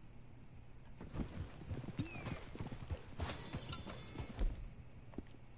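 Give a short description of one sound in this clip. Horses' hooves clop steadily on a dirt path.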